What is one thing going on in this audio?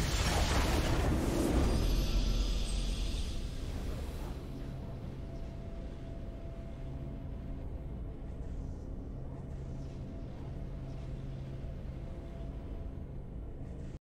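A triumphant victory fanfare swells and rings out.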